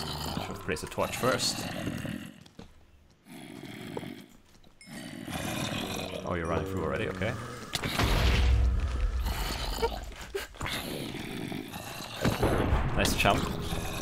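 Zombies groan nearby.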